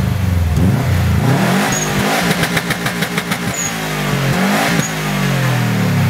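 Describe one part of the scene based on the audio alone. A car exhaust pops and crackles.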